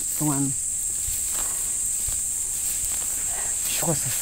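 Grass stalks rustle as they are pulled from the soil.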